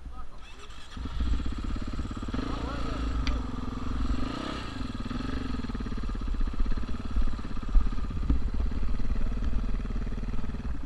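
A dirt bike engine runs close by.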